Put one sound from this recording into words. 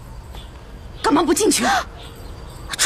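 A young woman exclaims in fright up close.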